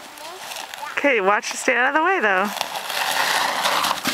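A plastic sled slides down over snow with a rushing hiss.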